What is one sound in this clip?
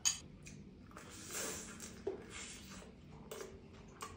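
A man chews and crunches food noisily.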